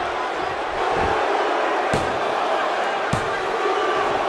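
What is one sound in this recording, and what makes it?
A referee's hand slaps a wrestling mat.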